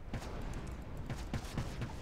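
A fiery spell bursts with a whoosh.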